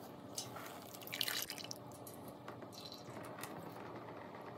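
Water pours out of a pot and splashes.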